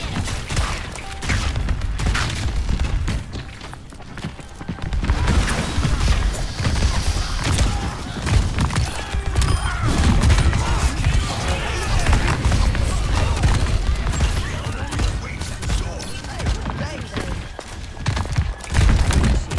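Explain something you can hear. A game weapon fires rapid bursts of shots.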